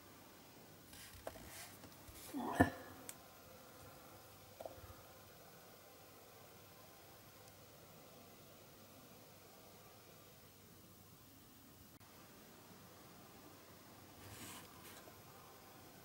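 Small metal tools click and tap against a tiny metal part.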